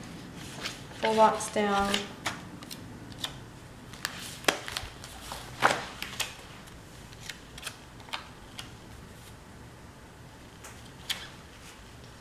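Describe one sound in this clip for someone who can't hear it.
Sticker sheets rustle and crinkle.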